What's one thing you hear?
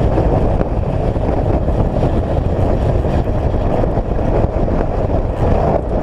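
Wind rumbles loudly outdoors.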